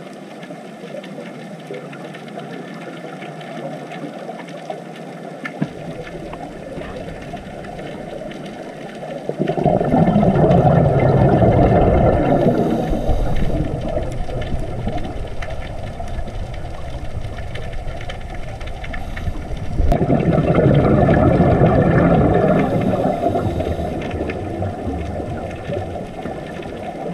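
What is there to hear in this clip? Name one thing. Air bubbles from scuba divers gurgle and rumble underwater.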